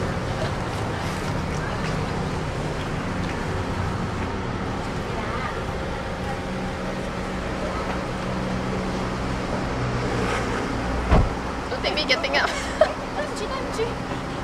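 A young woman laughs and talks cheerfully nearby.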